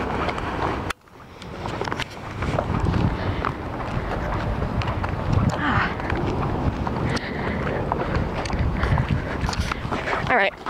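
Wind blows outdoors against a microphone.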